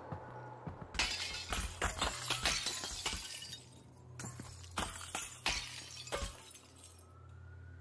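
Shards of broken glass rain down and clatter below.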